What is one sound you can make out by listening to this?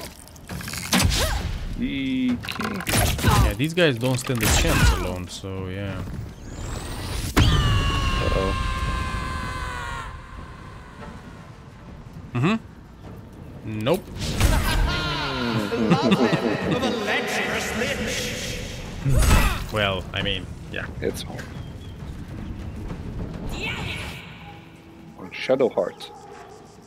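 Blows land with sharp thuds and clashes during a fight.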